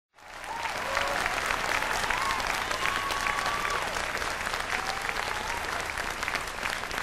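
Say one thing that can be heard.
A fiddle plays a sliding melody over the band.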